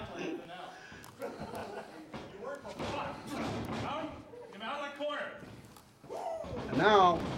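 Men in an audience shout and cheer loudly in an echoing hall.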